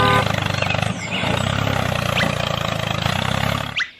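A small toy tractor motor whirs steadily.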